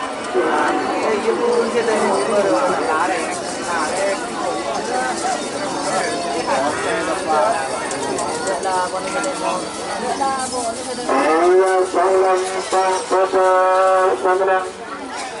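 A crowd of men shout and cheer outdoors.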